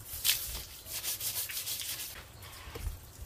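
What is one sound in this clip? A stiff broom scrubs rhythmically across wet wood.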